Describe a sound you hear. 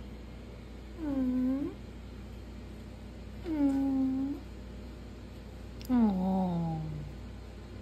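A cat meows loudly and drawn-out, three times.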